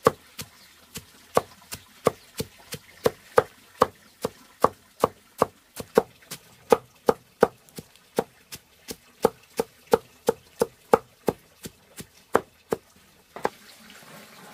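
A cleaver chops rapidly on a wooden board.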